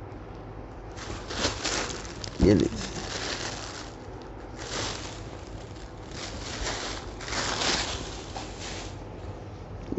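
Fabric rustles as it is unfolded and handled.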